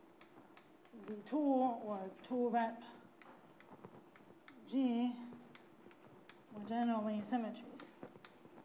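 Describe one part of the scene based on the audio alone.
A woman speaks calmly in short phrases through a microphone.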